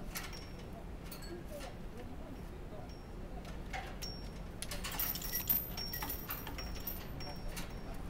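A cockatiel chirps softly nearby.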